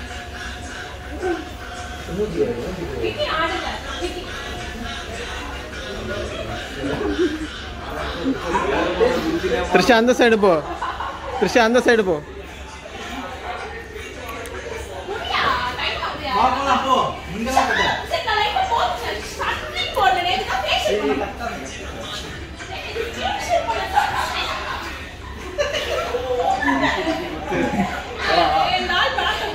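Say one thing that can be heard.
A woman talks animatedly nearby.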